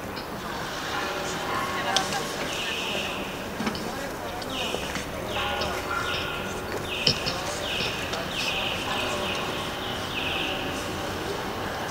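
A small band of musicians plays a slow tune outdoors.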